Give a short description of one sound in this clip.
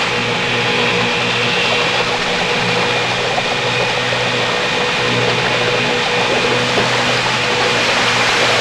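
Water sprays and splashes loudly.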